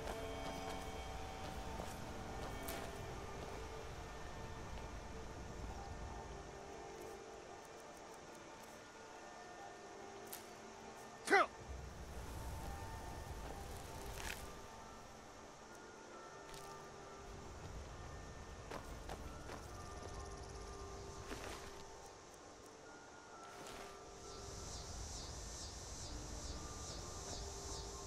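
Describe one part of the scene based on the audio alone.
Footsteps crunch on gravel.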